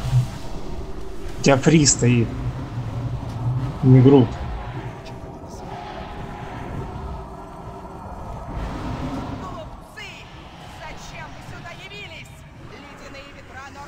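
Magic spells whoosh and crackle in a fast game battle.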